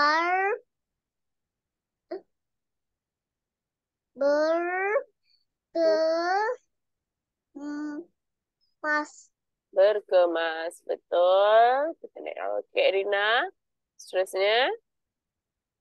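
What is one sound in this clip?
A young girl reads out words slowly over an online call.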